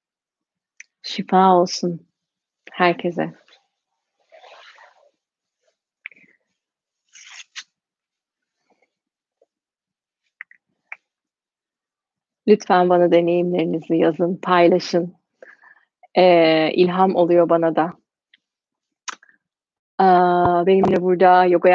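A young woman speaks calmly and warmly into a nearby microphone, with pauses.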